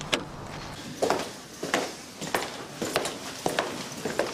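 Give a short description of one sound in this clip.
Footsteps sound on a hard floor indoors.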